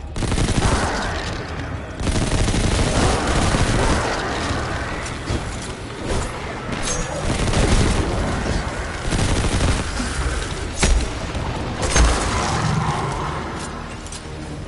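Gunfire blasts rapidly and loudly.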